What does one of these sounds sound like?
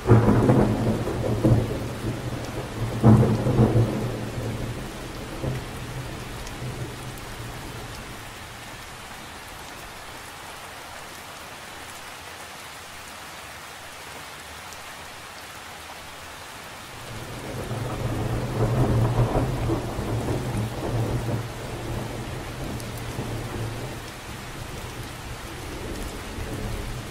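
Raindrops patter steadily on the surface of a lake.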